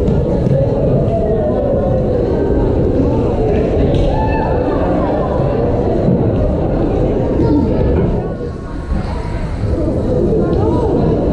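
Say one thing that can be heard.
A crowd chatters steadily in a large echoing gym.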